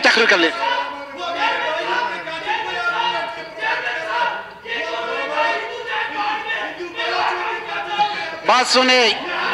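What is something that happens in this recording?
A middle-aged man speaks loudly and with animation into a microphone in an echoing hall.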